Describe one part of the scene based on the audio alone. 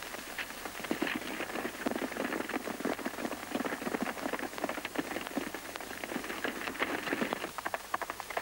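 Several horses gallop hard over dry ground.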